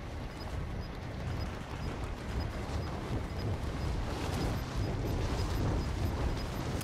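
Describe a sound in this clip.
Wind rushes past in a loud, steady roar that slowly grows.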